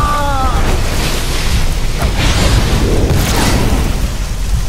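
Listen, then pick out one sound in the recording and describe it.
Energy blasts crackle and burst in quick bursts.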